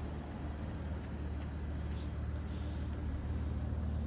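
A hand pats a fabric car roof.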